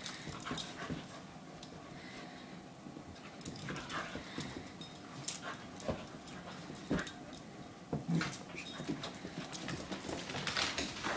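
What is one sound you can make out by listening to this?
A dog's paws patter and scrabble across the floor.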